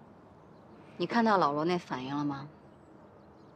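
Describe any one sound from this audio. A young woman speaks calmly outdoors.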